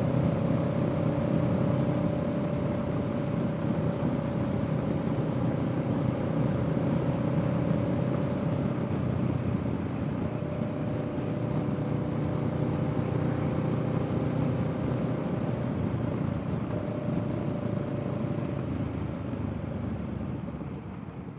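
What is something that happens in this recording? A parallel-twin cruiser motorcycle engine hums, cruising at a steady speed.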